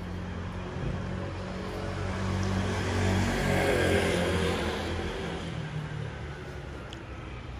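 A car drives past close by, swelling and fading.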